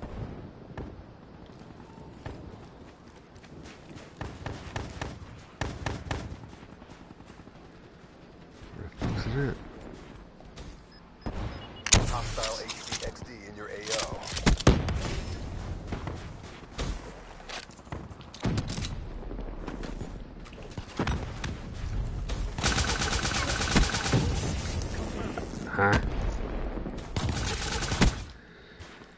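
Guns fire in sharp bursts of shots.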